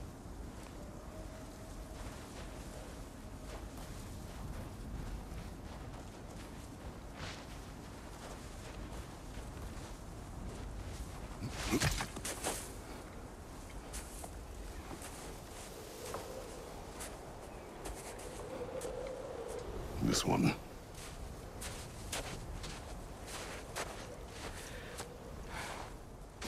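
Footsteps crunch through snow at a steady pace.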